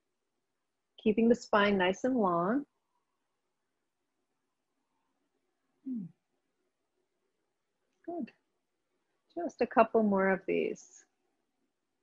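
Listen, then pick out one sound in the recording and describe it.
A woman speaks calmly into a microphone, with long pauses.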